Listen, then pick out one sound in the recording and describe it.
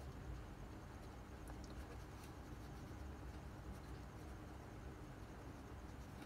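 A marker squeaks faintly as it writes on paper.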